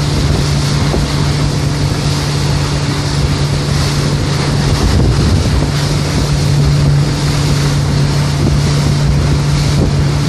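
Water splashes and rushes against a boat's hull.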